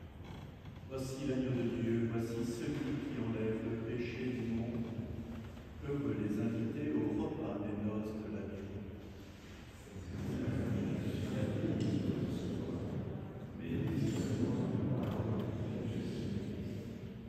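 An elderly man speaks slowly and solemnly, reciting, in a reverberant hall.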